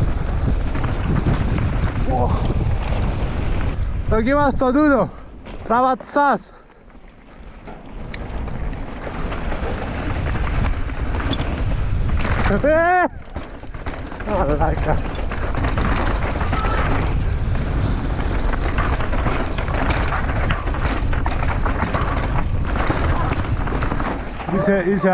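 Bicycle tyres rumble and crunch over rough dirt and stones.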